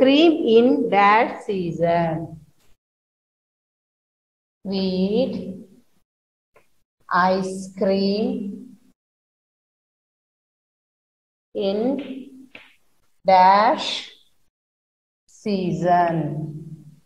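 A woman speaks slowly and clearly in short phrases, close by.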